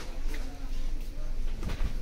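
Cloth rustles as it is unfolded by hand.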